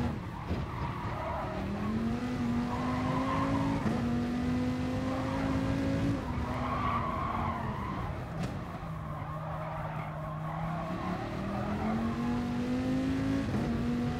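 A racing car engine roars, rising in pitch through the gears and dropping as it slows for corners.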